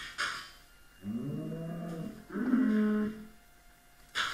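A cow moos nearby.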